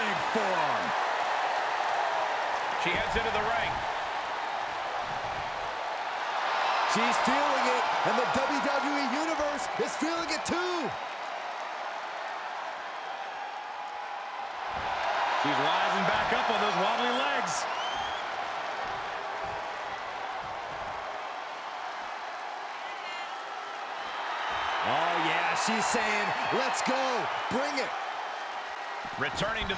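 A large crowd cheers and roars in waves.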